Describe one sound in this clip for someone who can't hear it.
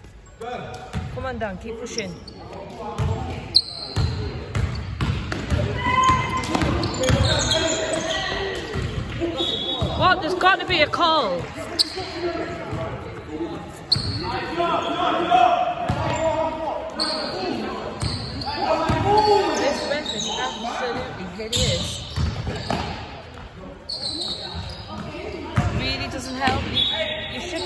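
Sneakers squeak on a wooden floor in an echoing hall.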